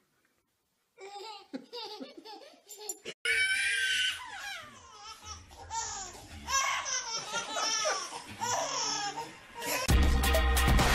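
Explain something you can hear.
Another baby laughs and squeals with delight.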